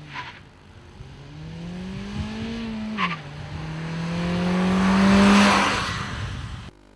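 Tyres hiss on asphalt as a car passes.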